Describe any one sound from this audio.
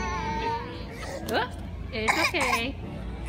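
A baby squeals.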